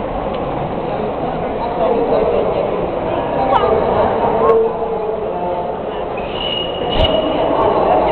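A model steam train rolls along the tracks with a low rumble.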